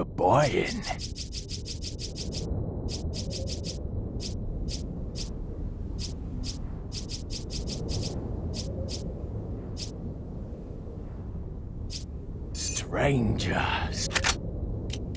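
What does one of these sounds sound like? A game menu cursor ticks in quick, sharp clicks as it scrolls.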